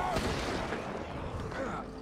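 A burning torch crackles.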